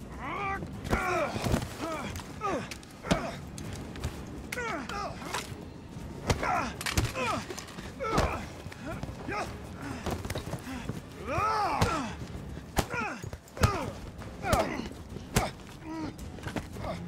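Punches and blows land with heavy thuds.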